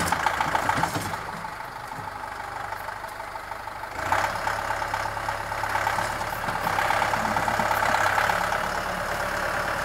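A loader bucket scrapes and pushes through dirt.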